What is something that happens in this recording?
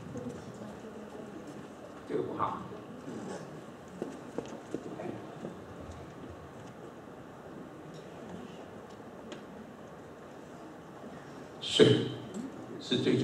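An older man speaks calmly through a microphone in an echoing room.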